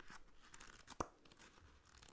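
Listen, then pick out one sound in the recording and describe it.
A book is opened with a soft thud.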